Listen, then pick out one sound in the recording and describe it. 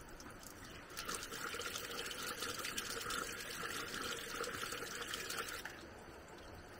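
Water runs from a tap and splashes onto hands.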